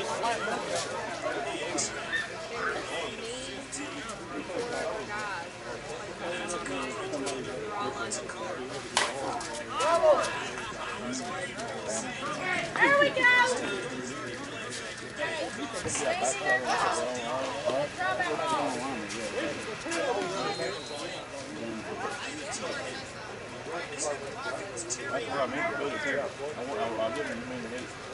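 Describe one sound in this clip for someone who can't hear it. Men call out and chatter across an open field.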